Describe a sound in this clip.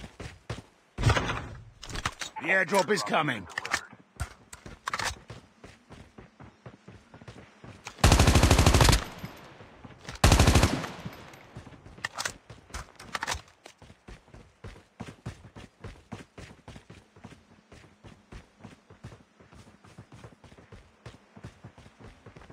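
Footsteps thud quickly and steadily on dirt.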